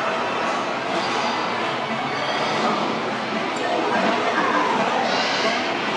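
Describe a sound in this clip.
Arcade game machines play overlapping electronic sounds and music.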